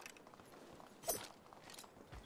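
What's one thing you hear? A rifle shot cracks once.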